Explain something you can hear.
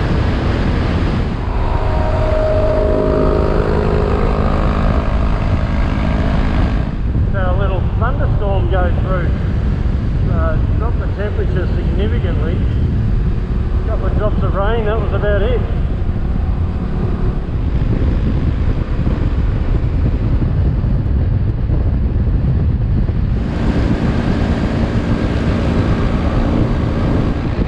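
Wind roars and buffets loudly throughout.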